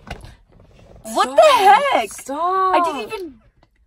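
A teenage girl sings loudly and playfully close by.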